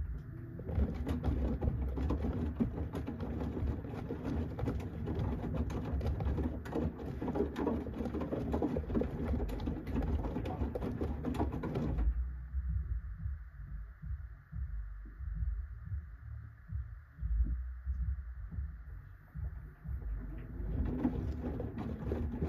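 Wet laundry sloshes and tumbles in a washing machine drum.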